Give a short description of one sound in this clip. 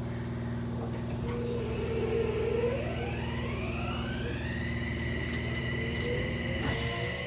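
An electric train's motor whines and rises in pitch as the train pulls away.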